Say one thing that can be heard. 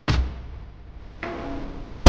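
Electric sparks crackle and zap.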